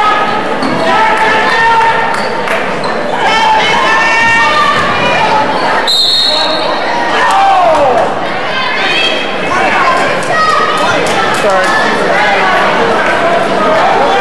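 A crowd of spectators talks and cheers in a large echoing gym.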